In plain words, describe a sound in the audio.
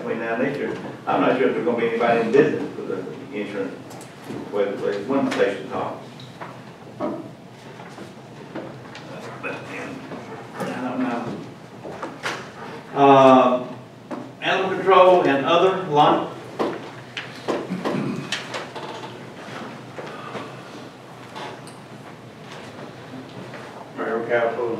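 Elderly men speak calmly through microphones.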